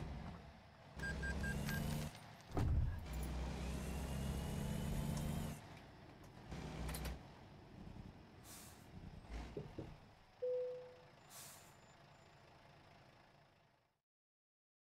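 A truck engine rumbles and revs as the truck drives slowly.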